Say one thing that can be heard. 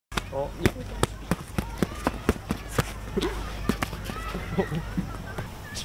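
Gloved fists thump sharply against hand pads in quick bursts.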